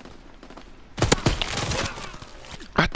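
Gunfire rings out in a short, loud burst.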